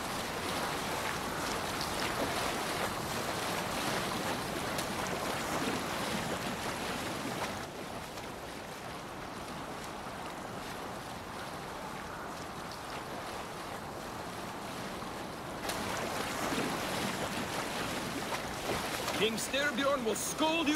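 Waves splash and rush against a boat's hull.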